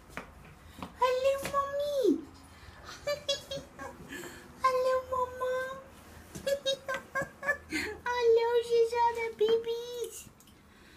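A cat meows loudly and repeatedly, in long drawn-out cries.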